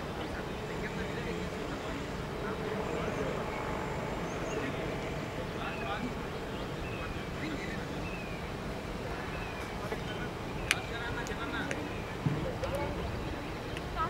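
Men talk and call out far off across an open field.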